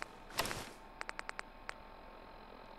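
Short electronic clicks tick quickly one after another as a menu selection steps down a list.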